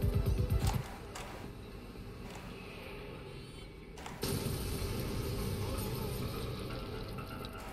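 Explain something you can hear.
Pulsing electronic music plays.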